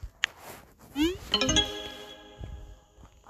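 A short rising chime sounds as a message is sent.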